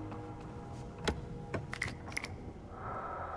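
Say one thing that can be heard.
A wooden lid creaks and clicks open.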